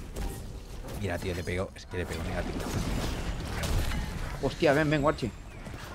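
Game combat effects whoosh and crackle.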